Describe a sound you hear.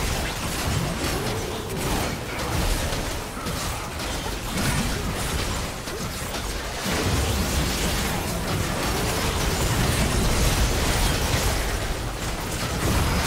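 Magic spells crackle and blast in a busy fight.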